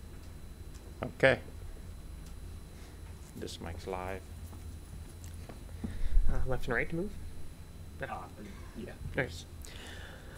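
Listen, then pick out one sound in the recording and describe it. A young man speaks in short bursts through a microphone.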